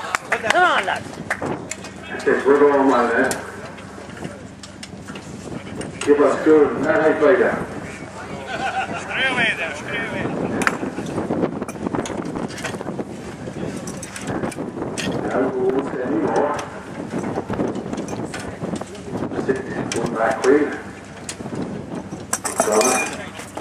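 Metal tools clank against a tractor wheel.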